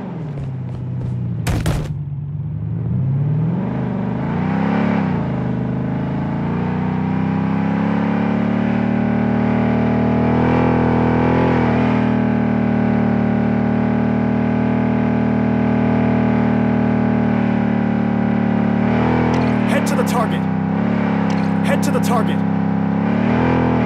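A truck engine roars steadily, revving up and down as it drives.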